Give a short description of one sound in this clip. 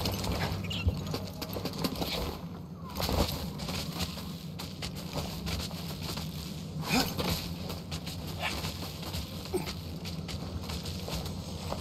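Hands scrape and grip on a stone wall while climbing.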